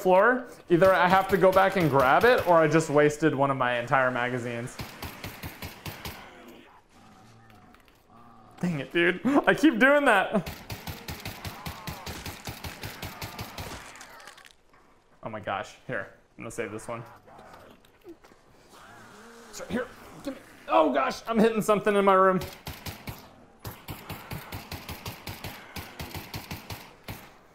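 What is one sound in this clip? A gun fires in rapid bursts of shots.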